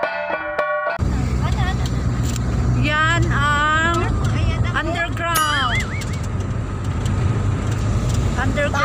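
A car engine hums with a low steady rumble, heard from inside the car.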